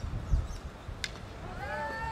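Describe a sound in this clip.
A hockey stick sharply strikes a ball.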